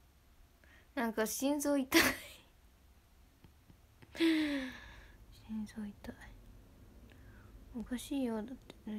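A young woman speaks softly and playfully, close to a microphone.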